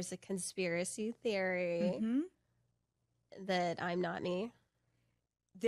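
A woman speaks with animation into a close microphone.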